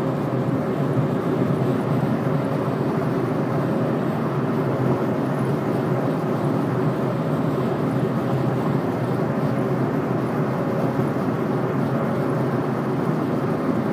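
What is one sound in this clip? Tyres roar steadily on a highway from inside a moving car.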